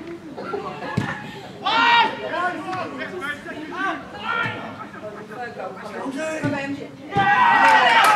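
A ball is kicked with a dull thud.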